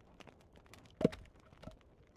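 A game menu gives a short click as a selection changes.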